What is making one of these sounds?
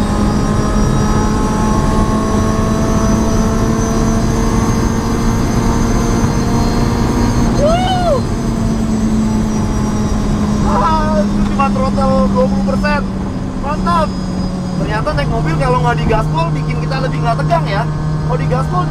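Tyres roar on a road.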